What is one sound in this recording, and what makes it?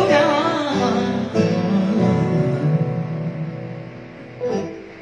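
A keyboard plays chords along with the singing.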